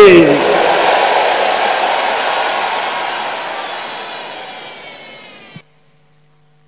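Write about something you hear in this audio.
A large crowd cheers and shouts loudly in a big hall, then fades away.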